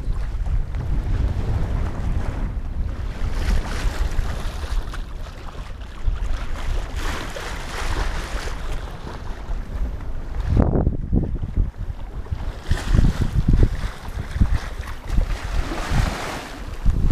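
Water splashes and hisses along a boat's hull.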